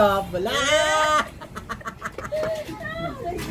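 An elderly woman laughs nearby.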